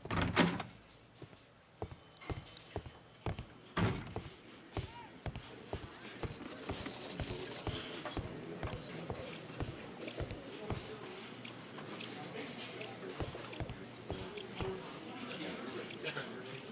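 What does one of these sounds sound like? Footsteps walk steadily across a wooden floor.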